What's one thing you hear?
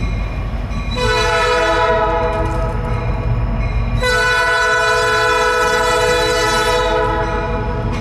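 A train horn blows two long, loud blasts.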